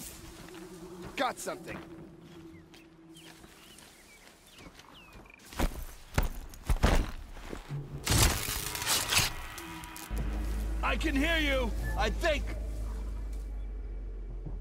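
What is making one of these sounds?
Grass rustles as a figure creeps through it.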